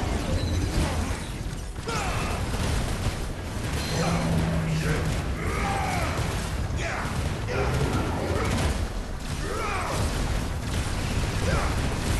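Blades clash and strike again and again.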